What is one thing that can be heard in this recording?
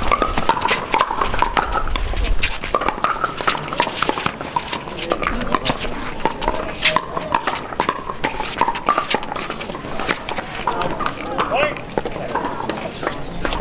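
Paddles hit a plastic ball back and forth with sharp pops.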